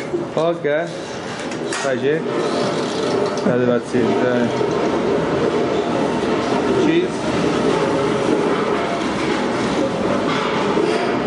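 An elderly man speaks with animation nearby.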